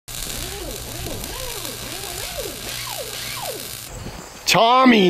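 An arc welder crackles and hisses steadily.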